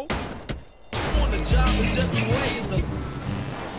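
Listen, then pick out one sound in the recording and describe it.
Music plays from a car radio.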